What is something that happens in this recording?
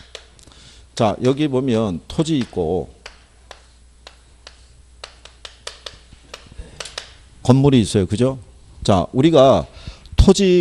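A man speaks with emphasis through a microphone, in short bursts.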